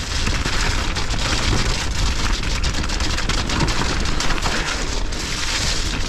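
Bicycle tyres rattle and crunch over a rough, stony trail.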